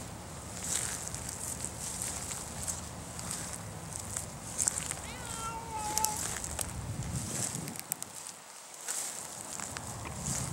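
A cat's paws rustle softly through dry grass.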